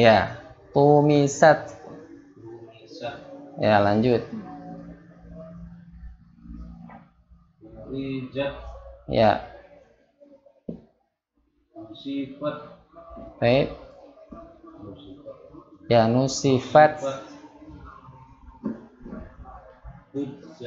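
A young man speaks calmly and with pauses, close to a microphone.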